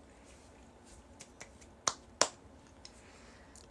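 A young woman laughs softly close to a microphone.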